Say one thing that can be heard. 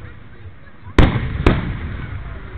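Fireworks crackle and hiss as sparks fall.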